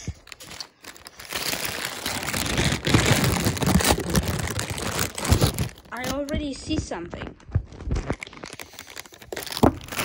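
A plastic mailer bag crinkles and rustles.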